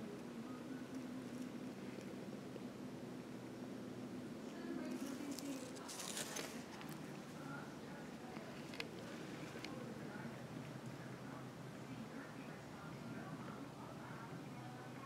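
A cat purrs close by.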